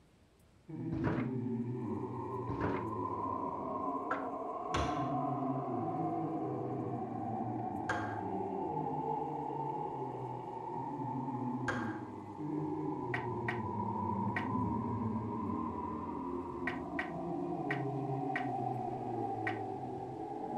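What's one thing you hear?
Short menu clicks and chimes sound now and then.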